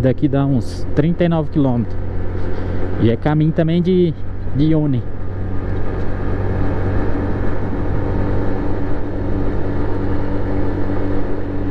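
A motorcycle engine hums steadily while riding.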